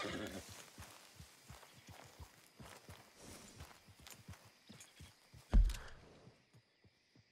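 A horse's hooves thud on grass at a walk.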